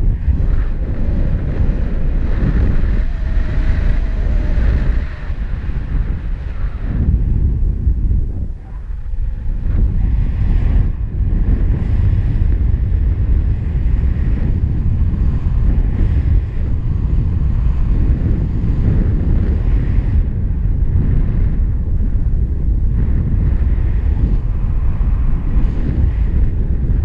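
Strong wind rushes and buffets past, loud and rumbling throughout.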